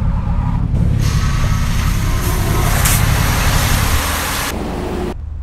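Water sprays and hisses over a car.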